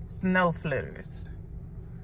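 A woman speaks with emotion, close by.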